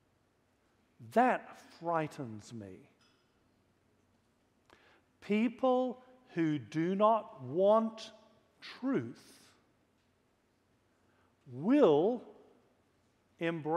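A man preaches with emphasis through a microphone, with long pauses.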